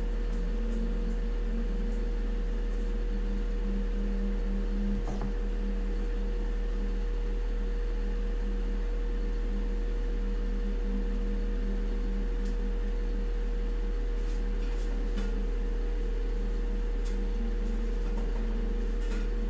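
A ceiling fan whirs and hums steadily close by.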